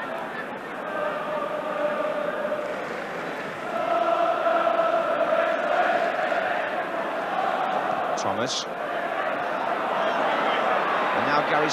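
A stadium crowd chants and sings in unison.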